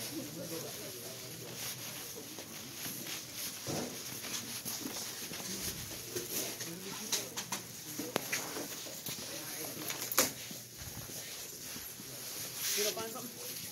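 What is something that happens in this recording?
Voices murmur in a large indoor space.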